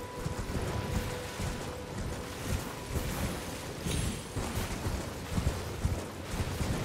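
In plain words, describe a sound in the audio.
A horse gallops with heavy, rhythmic hoofbeats.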